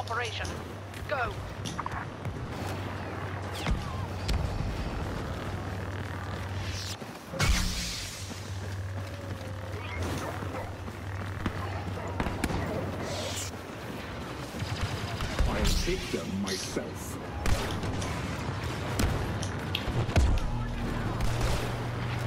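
Blaster shots fire in short bursts.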